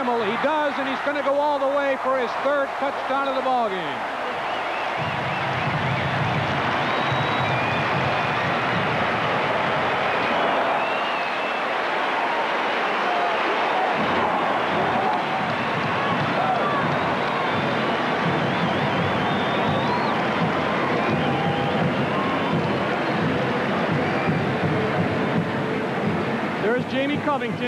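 A large crowd cheers and roars in a big echoing stadium.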